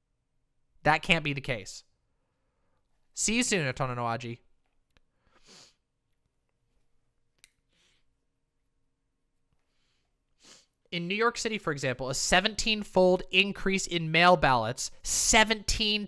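A young woman talks with animation into a close microphone, pausing now and then.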